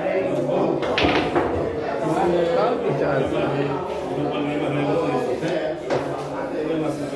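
Men talk and laugh nearby.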